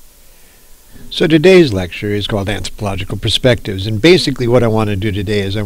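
An elderly man speaks calmly into a headset microphone.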